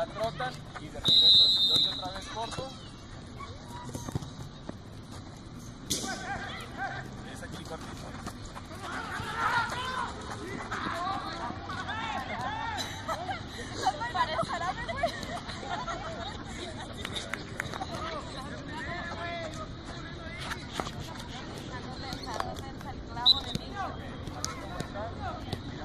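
Young women call out and chatter with animation outdoors.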